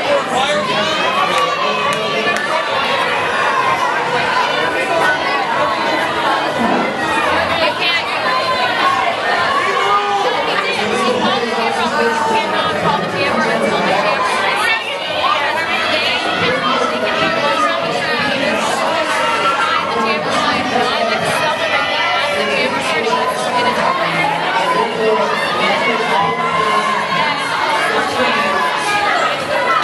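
A crowd of men and women chatters, echoing in a large hall.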